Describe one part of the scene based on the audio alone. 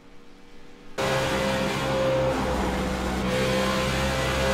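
A race car engine drones steadily at speed.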